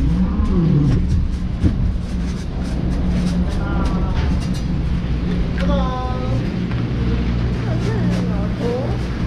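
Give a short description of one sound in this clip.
Chairlift machinery hums and rumbles steadily.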